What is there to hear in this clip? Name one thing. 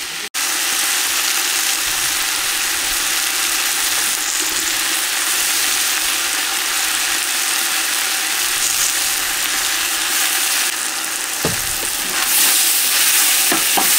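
Onions sizzle steadily in a hot pot.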